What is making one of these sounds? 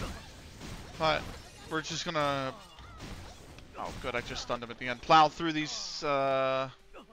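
A man talks into a nearby microphone with animation.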